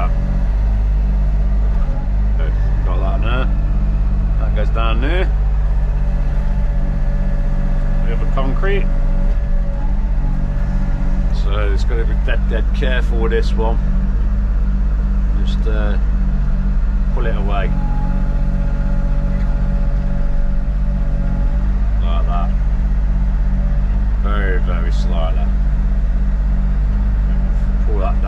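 An excavator engine rumbles steadily close by.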